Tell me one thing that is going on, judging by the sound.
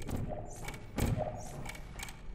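A futuristic gun fires with a sharp electric zap.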